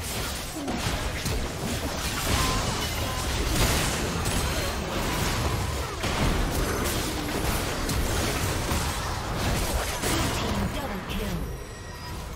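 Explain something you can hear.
Spell blasts and weapon strikes crackle and boom in a fast game battle.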